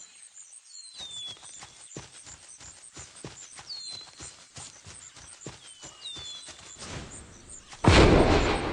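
Paws patter steadily on the ground.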